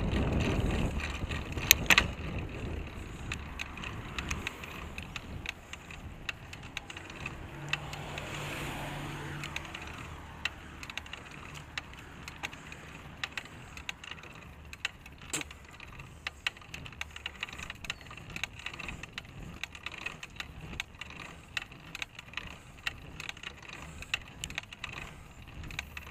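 Small wheels rumble and click over a rough road.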